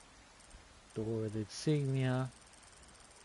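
A young man speaks briefly and close up, through a microphone.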